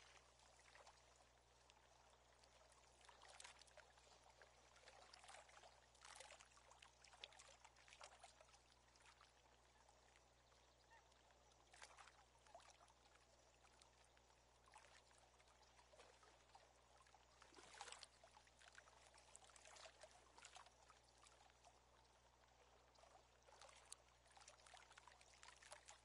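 A fishing reel winds in line with a soft whirr.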